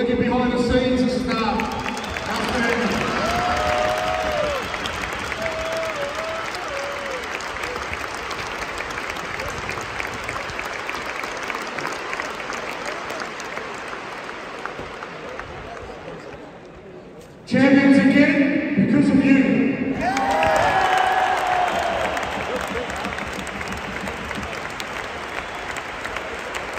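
A large stadium crowd roars and sings loudly all around.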